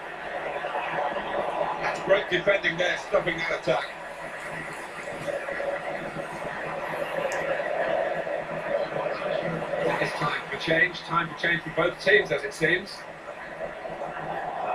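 A stadium crowd roars steadily through a television loudspeaker.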